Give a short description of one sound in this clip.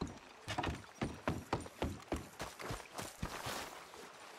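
Footsteps thud steadily on wooden planks.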